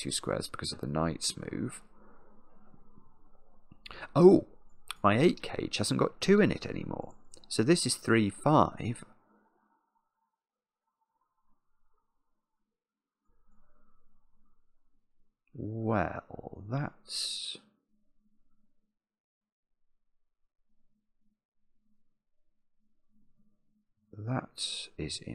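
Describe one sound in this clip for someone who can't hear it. A middle-aged man talks calmly and thoughtfully into a close microphone, with long pauses.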